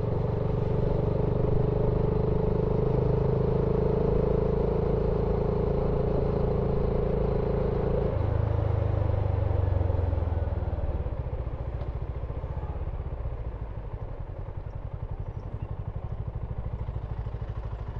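A motorcycle engine rumbles close by, then shifts down and slows to a lower, pulsing chug.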